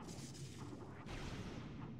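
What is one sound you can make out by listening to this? A bright electric sparking crackles.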